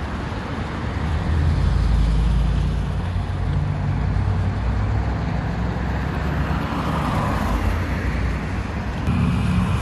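A powerful car engine rumbles deeply as an SUV pulls away.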